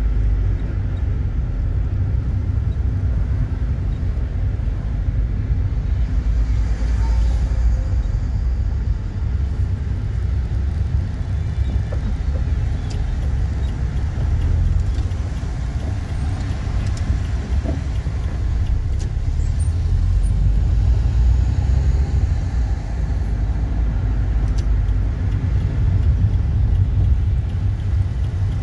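A car engine hums steadily while driving, heard from inside.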